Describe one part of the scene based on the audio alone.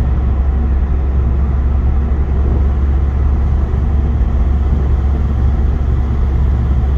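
Tyres rumble steadily on a road.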